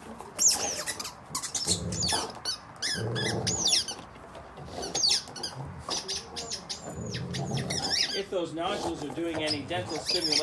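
A dog squeezes a squeaky rubber toy with its mouth, making it squeak again and again.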